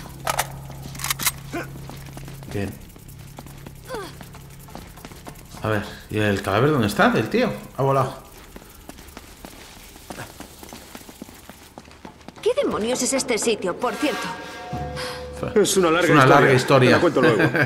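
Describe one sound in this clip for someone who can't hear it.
Footsteps run across stone.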